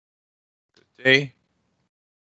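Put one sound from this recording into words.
A woman speaks a brief word over an online call.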